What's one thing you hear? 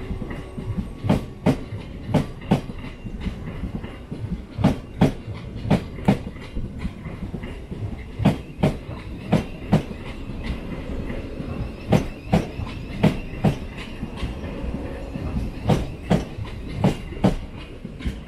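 A train rumbles steadily as it moves through.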